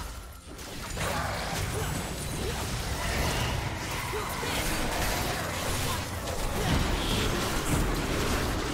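Magic blasts and impacts crackle and boom in a video game battle.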